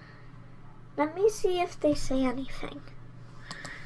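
A young girl speaks into a computer microphone.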